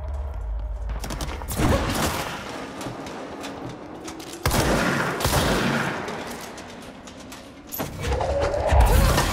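Gunshots crack and boom in quick bursts.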